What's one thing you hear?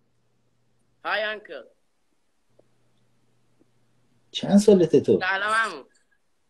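A teenage boy speaks and laughs over an online call.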